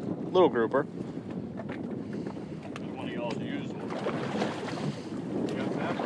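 Water sloshes and laps against a boat's hull.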